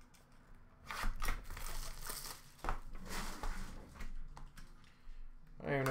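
Plastic wrapping crinkles and tears as hands open a pack.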